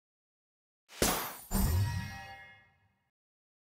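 A bright chime rings as a treasure chest opens.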